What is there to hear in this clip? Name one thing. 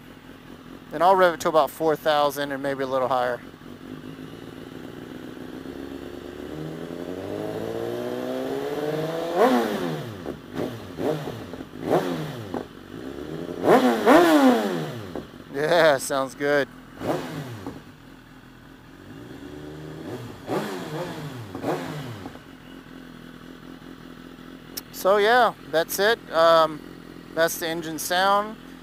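A motorcycle engine revs hard in short, sharp bursts, rising and falling in pitch.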